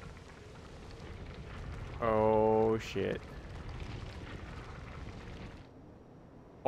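Wind rushes past a flying glider.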